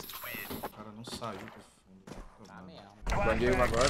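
A man speaks in a low, annoyed voice close to a microphone.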